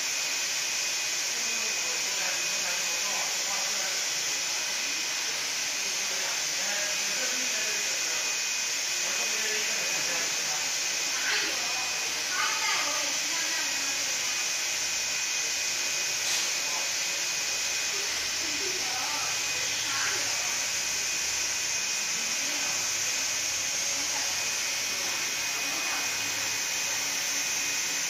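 A UV flatbed printer's print head carriage shuttles back and forth with a steady whirring hum.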